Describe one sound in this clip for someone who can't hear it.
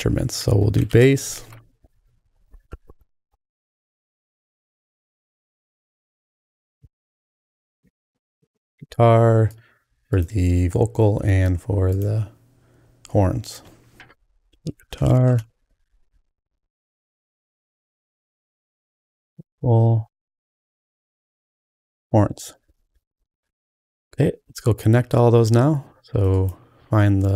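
A middle-aged man talks calmly and closely into a microphone, in short bursts with pauses.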